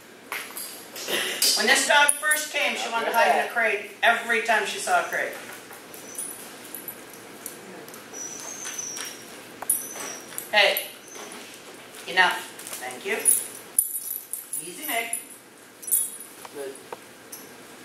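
An older woman speaks encouragingly in a large echoing hall.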